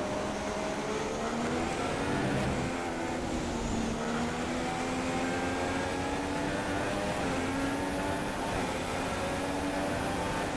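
A racing car engine revs high and shifts through the gears.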